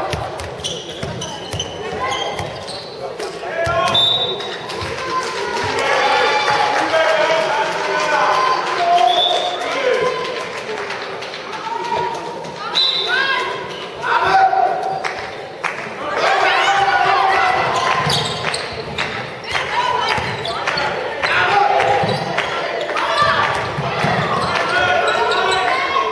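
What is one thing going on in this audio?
Sneakers squeak on the floor.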